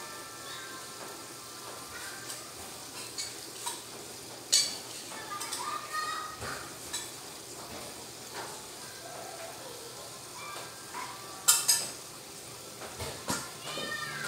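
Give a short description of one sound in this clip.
Hands squish and knead soft mashed food in a metal pot.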